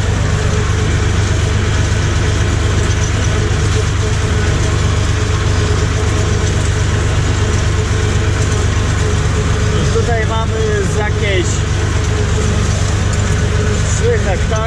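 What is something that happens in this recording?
A tractor engine runs with a steady low rumble close by.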